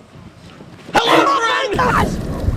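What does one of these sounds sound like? A young man screams in fright close by.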